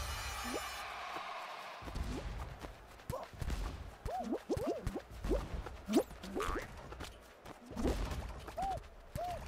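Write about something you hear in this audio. Cartoon figures make bouncy, springy sounds again and again as they jump and bump into each other.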